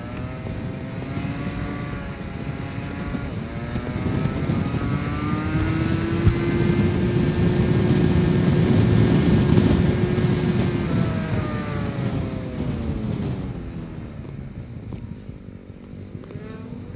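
A scooter engine hums and rises in pitch as it speeds up, then falls as it slows.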